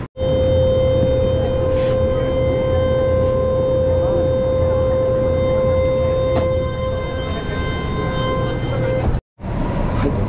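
A subway train rumbles loudly with a steady whine as it rides along.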